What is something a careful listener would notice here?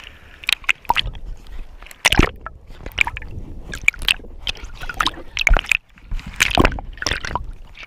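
Water gurgles and bubbles underwater.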